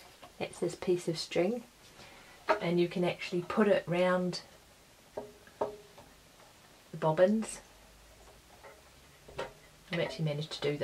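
A woman speaks calmly close by, explaining in short phrases.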